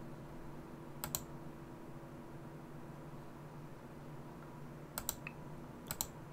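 A computer mouse clicks sharply in quick pairs.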